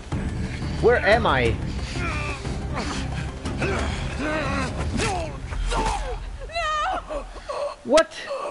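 Men grunt and strain as they grapple.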